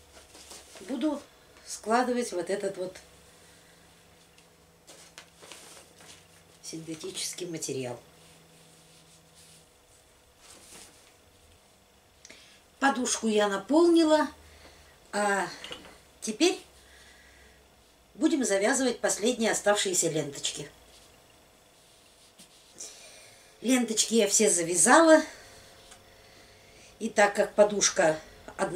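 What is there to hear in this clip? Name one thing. A middle-aged woman talks calmly close by, in short bursts.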